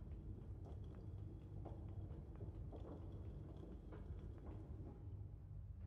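A cable winch creaks as a hanging crate is lowered.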